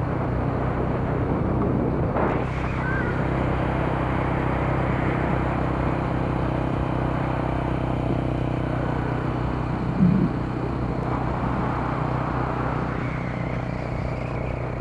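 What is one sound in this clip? Water rumbles and churns steadily underwater.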